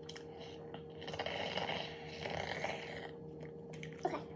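A girl crunches while eating.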